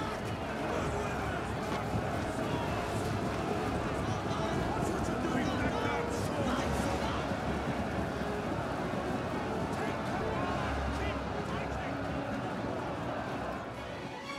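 A large crowd of soldiers shouts and roars in battle.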